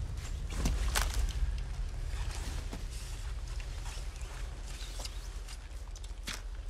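A tent's nylon fabric rustles as a person crawls out of it.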